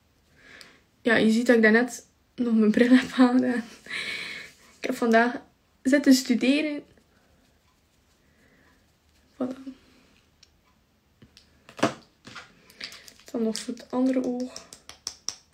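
A young woman talks calmly and close by, in short bursts.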